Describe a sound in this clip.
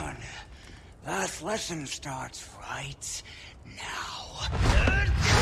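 A man with a deep, rough voice speaks menacingly.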